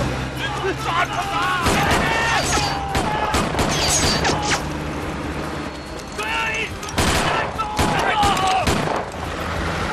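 Rifles fire in sharp, rapid shots.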